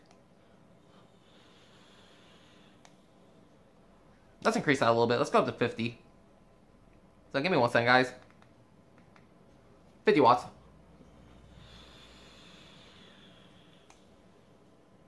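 A young man inhales slowly through a vape.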